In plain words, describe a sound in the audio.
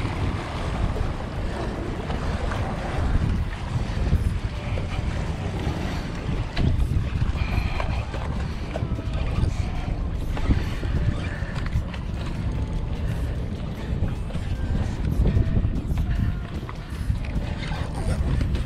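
A fishing reel clicks as its line winds in.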